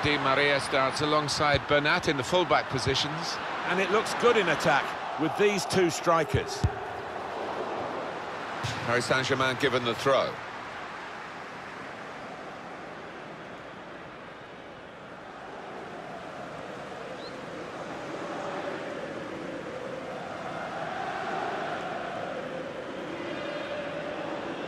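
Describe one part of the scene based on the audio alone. A large crowd murmurs and roars steadily in a stadium.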